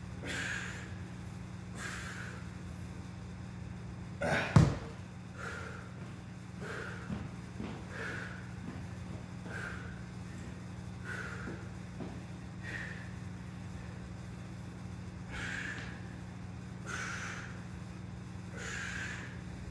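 A man breathes out hard in short, regular puffs.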